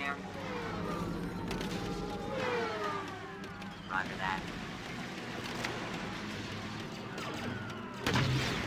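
Laser blasters fire in quick, falling zaps.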